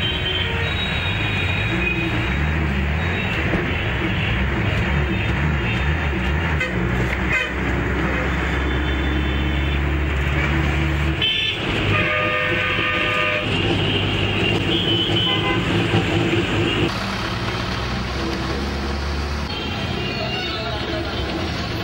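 A vehicle engine hums and rumbles steadily while driving.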